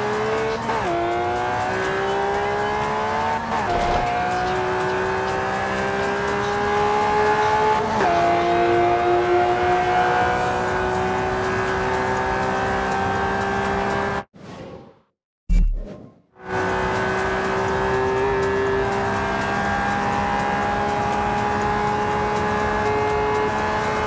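A V12 supercar engine accelerates at full throttle, with gear upshifts.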